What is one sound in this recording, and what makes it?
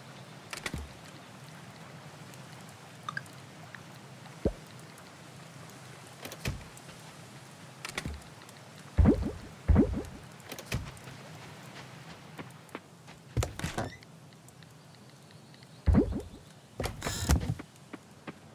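Short game menu clicks and pops sound now and then.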